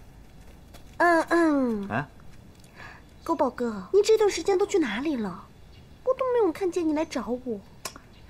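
A young woman speaks questioningly close by.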